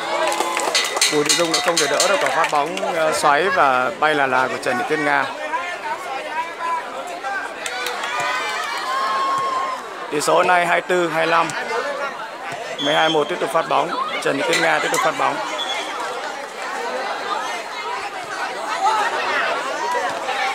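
A crowd of young people chatters and shouts outdoors.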